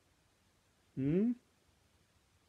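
A middle-aged man speaks briefly and expressively, close to a microphone.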